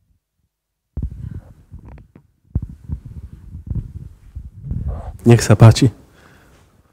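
A middle-aged man speaks into a microphone, heard up close.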